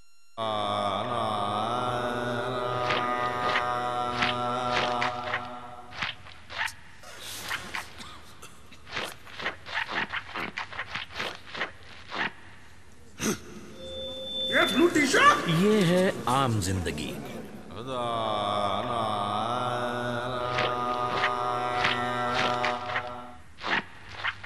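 An elderly man sings slowly through a microphone.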